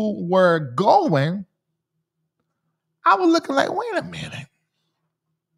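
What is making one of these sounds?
A man speaks with animation, close into a microphone, in short bursts.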